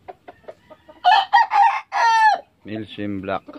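A rooster crows close by.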